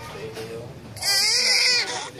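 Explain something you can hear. A newborn baby bursts into a loud, high cry.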